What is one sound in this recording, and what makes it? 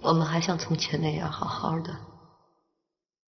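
A man speaks quietly and gently, close by.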